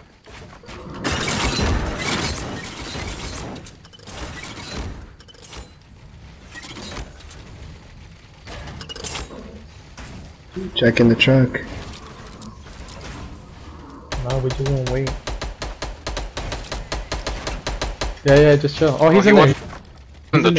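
Wooden building pieces clatter and snap into place in quick bursts.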